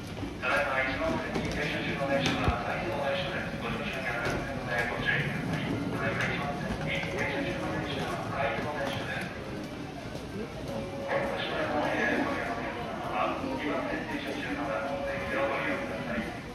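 A woman's recorded voice makes an announcement over a loudspeaker in an echoing hall.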